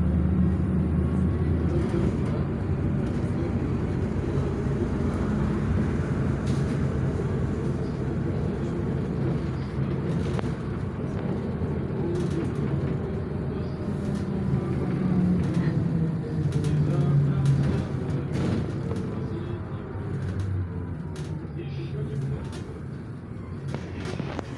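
A vehicle engine hums steadily from inside, with road rumble.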